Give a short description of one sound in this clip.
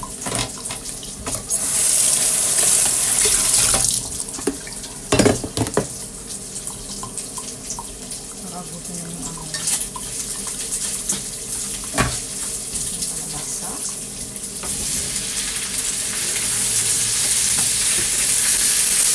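Food sizzles loudly in a hot frying pan.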